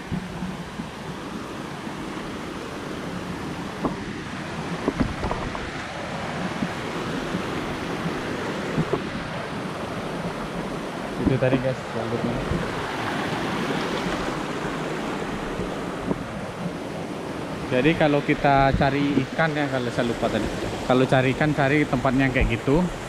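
A stream rushes and splashes over rocks nearby.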